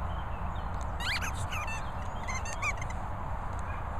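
Small dogs yelp and whine as they play.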